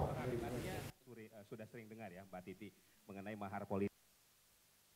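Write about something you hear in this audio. A man speaks into a microphone, more faintly.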